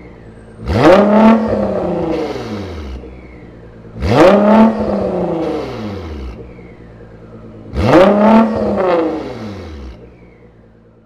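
A sports car engine revs sharply three times, roaring and then falling away.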